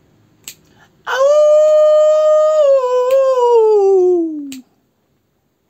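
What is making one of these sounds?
A young man sings a long, loud note close by that slides down at the end.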